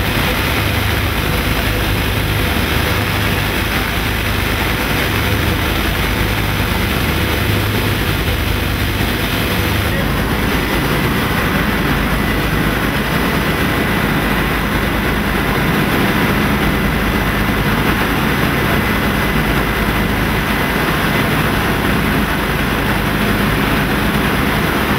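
The radial piston engines of a B-25 bomber drone at cruise, heard from inside the cabin.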